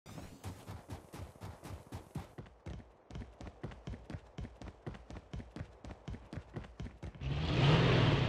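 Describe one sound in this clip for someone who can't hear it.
Footsteps run quickly on a hard road.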